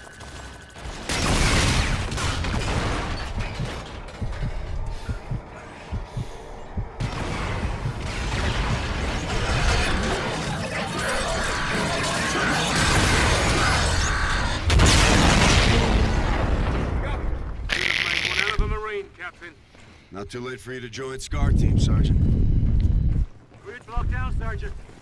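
Guns fire in loud, rapid bursts.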